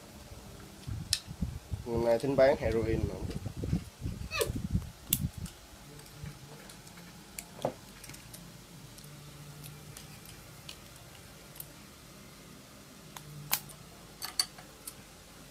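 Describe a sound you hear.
Small plastic parts click and tap in hands.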